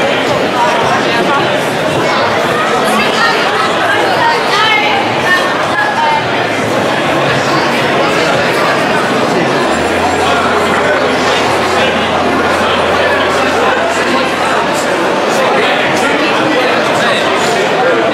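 A crowd of men and women chatters all around in a busy, echoing space.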